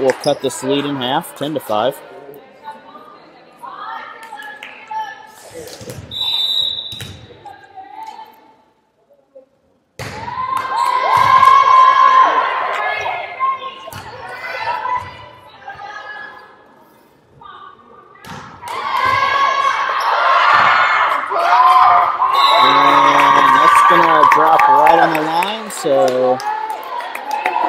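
A volleyball is hit back and forth with sharp thumps.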